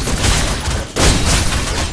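A fiery blast explodes with a roar.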